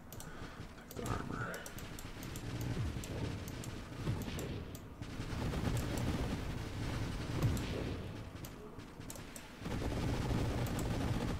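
Rapid electronic laser shots fire in a steady stream.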